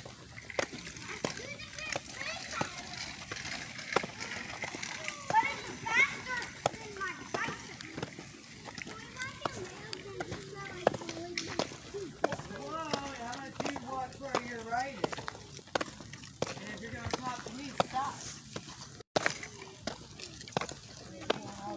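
Young children shout and chatter playfully outdoors nearby.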